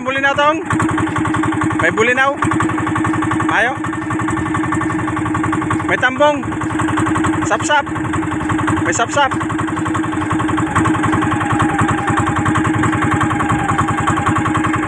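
A boat engine drones steadily across the water.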